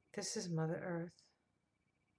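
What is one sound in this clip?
A middle-aged woman speaks briefly and calmly, close to a microphone.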